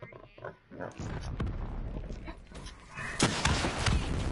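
Rapid gunfire rings out in bursts, with loud shots.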